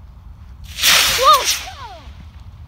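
A model rocket launches with a sharp rushing whoosh.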